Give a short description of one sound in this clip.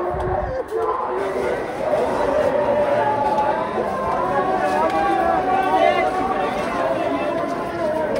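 A large crowd of men chants loudly together.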